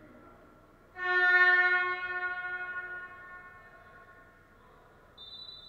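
A loud buzzer sounds in a large echoing hall and slowly fades.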